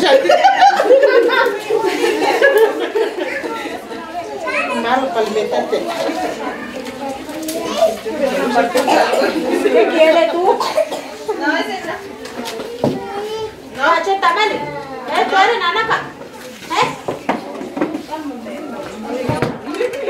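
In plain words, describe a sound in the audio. Several women chat and talk over one another close by.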